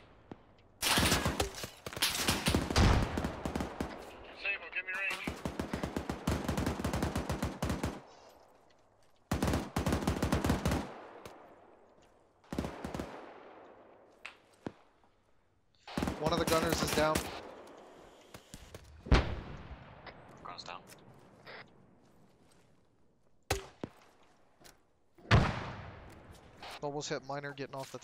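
Gunfire rattles in rapid bursts with echoing tails.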